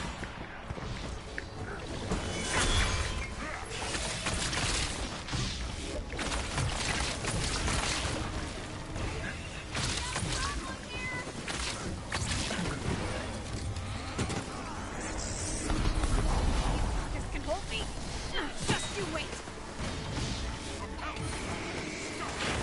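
Explosions boom and crackle during a video game fight.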